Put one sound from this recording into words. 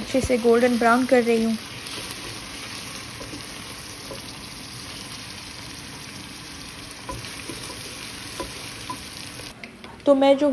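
A wooden spatula scrapes against a pan.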